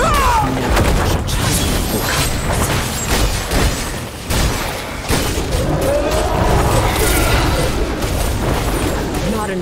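Weapon strikes clash and thud against a monster in quick bursts.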